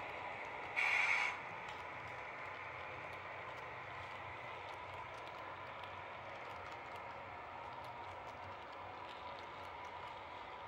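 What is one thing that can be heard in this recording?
A model train rolls along the track with a steady whirr and rattle.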